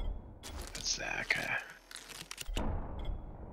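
A short game chime sounds as an item finishes crafting.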